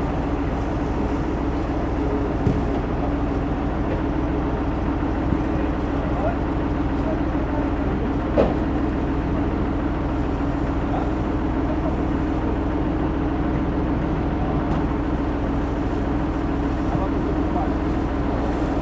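Water from a fire hose hisses and splashes steadily.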